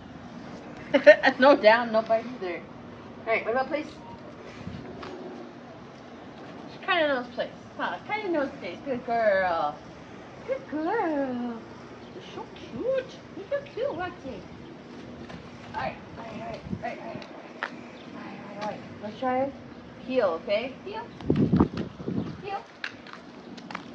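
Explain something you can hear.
A woman speaks to a dog with animation, close by and outdoors.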